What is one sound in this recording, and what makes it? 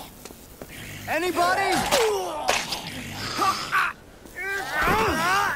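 Zombies groan and moan loudly nearby.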